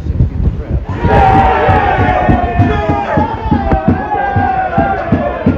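Spectators cheer and shout loudly close by.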